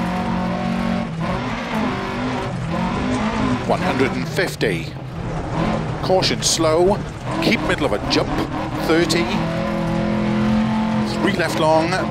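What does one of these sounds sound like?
Tyres crunch and skid over gravel.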